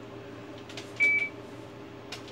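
An electronic machine gives a short beep.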